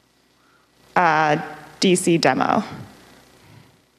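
A young woman speaks briefly through a microphone.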